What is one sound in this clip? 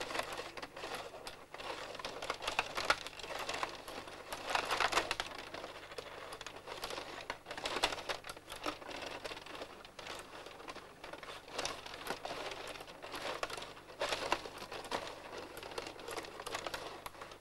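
Plastic table hockey players clack and rattle as the rods spin.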